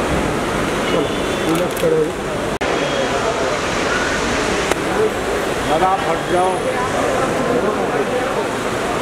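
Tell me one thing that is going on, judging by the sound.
Men call out nearby over the crowd's chatter.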